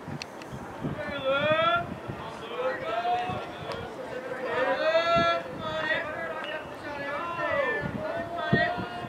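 Young women shout cheers nearby in an open outdoor space.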